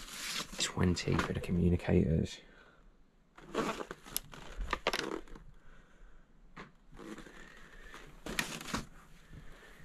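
Plastic toy packaging crinkles and rustles in a hand.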